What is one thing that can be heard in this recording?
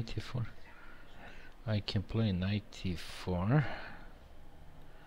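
A middle-aged man speaks calmly into a headset microphone.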